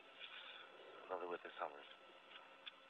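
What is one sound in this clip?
A man speaks briefly over a radio link.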